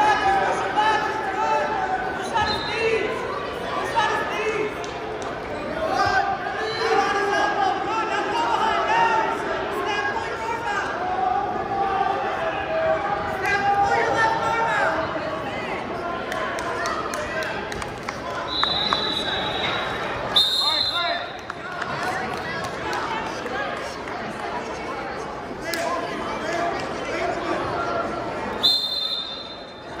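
A crowd of spectators talks and shouts in a large echoing hall.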